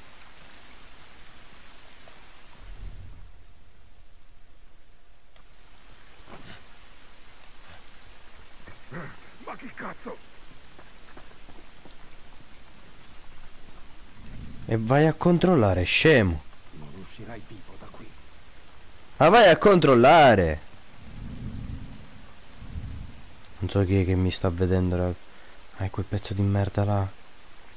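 Rain patters steadily outdoors.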